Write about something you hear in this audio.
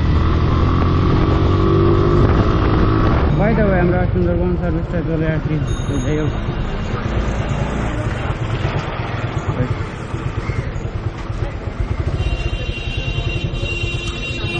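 A motorcycle engine rumbles up close, slowing to an idle.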